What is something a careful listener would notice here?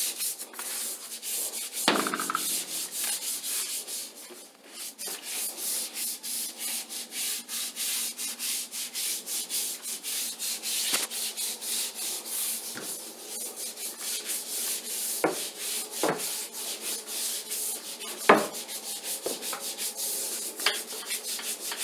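A mop scrubs back and forth over a wet tile floor with quick, rhythmic swishes.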